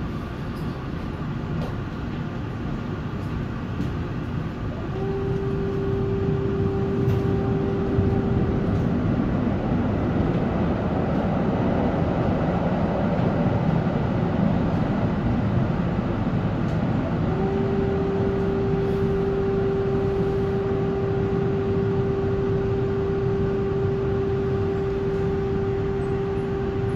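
Tyres roll on the road beneath a bus.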